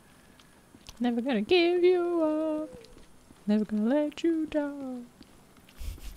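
A young woman sings a few playful notes close to a microphone.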